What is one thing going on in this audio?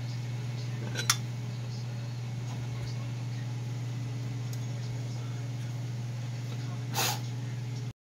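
A metal vise handle clanks against the vise.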